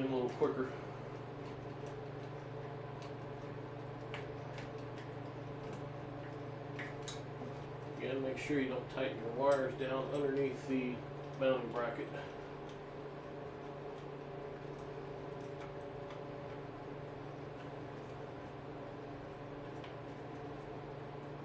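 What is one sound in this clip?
Small metal parts click and clink under hands.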